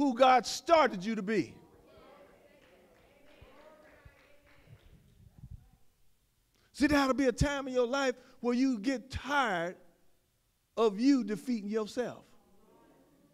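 A man preaches loudly and with animation through a microphone in a large echoing hall.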